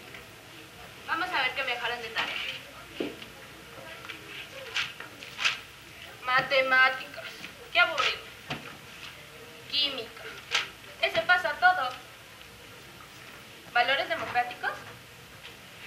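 A young woman speaks with animation, heard in a hall.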